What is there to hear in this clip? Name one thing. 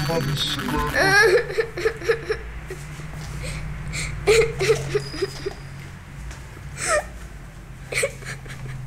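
A woman speaks nearby in a high, tense voice.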